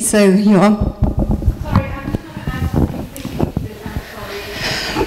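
A woman speaks with animation into a nearby microphone.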